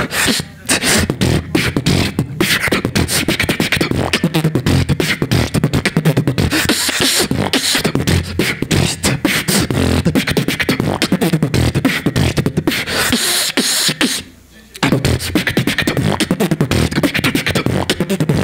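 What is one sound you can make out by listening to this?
A young man beatboxes rapidly into a microphone over loudspeakers, with punchy kick and snare sounds.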